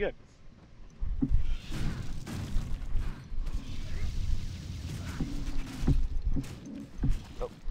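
Magic blasts whoosh and burst in quick succession.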